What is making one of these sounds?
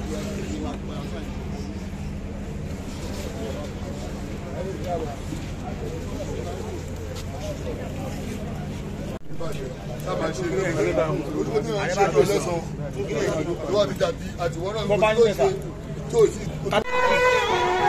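A crowd chatters and murmurs outdoors.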